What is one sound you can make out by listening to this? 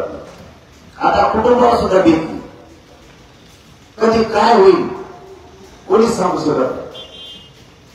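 A young man speaks loudly and with animation through a microphone and loudspeakers, in short bursts with pauses.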